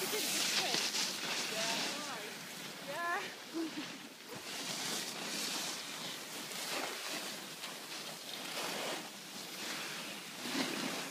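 Skis and a snowboard scrape and hiss over the snow.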